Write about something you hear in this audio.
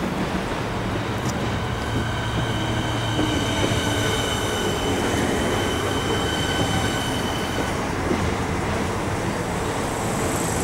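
A train rumbles into the station and slows down.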